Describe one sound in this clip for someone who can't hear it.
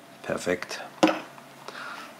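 A folding knife knocks as it is set down on a wooden table.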